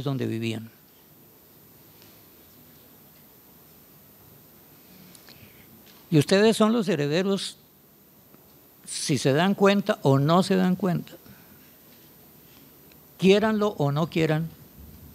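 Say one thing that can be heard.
An elderly man speaks calmly into a microphone in a large room.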